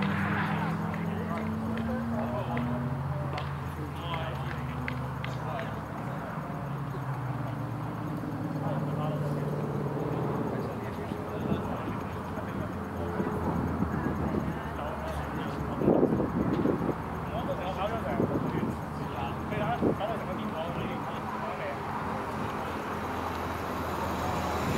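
Wind blows steadily across an open field.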